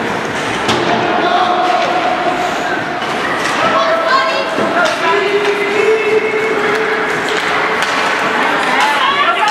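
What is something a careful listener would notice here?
Hockey sticks clack against the puck and boards.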